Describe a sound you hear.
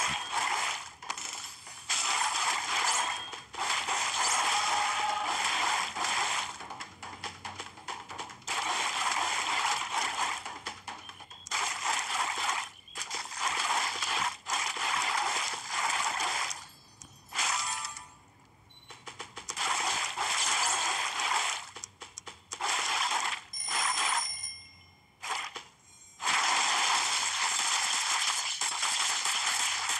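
Quick blade swishes slice through the air again and again.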